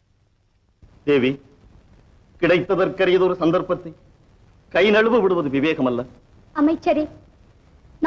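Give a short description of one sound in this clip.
An elderly man speaks in a deep voice.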